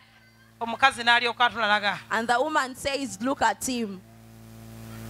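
A young woman speaks with animation into a microphone over loudspeakers.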